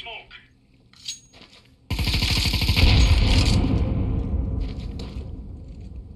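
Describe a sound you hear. A heavy gun is raised with a rattling clack.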